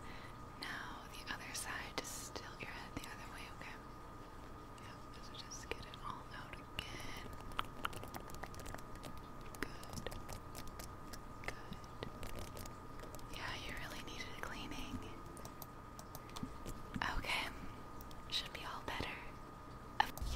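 A young woman whispers softly and closely into a microphone.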